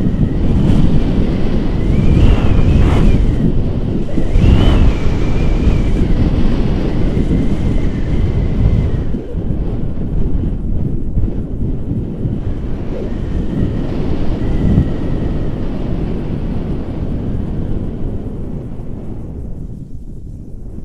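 Strong wind rushes and buffets past a microphone outdoors.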